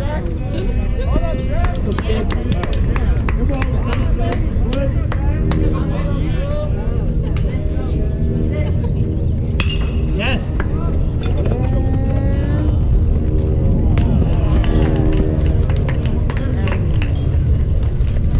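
Young players shout and cheer from across an open field.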